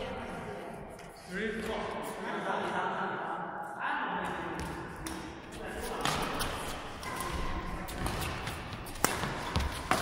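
Paddles hit a ball with sharp pops in an echoing hall.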